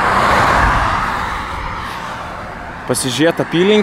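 Wind rushes loudly past while moving along a road.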